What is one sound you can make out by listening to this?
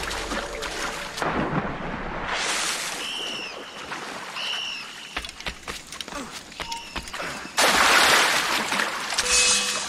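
Water splashes loudly as a man swims.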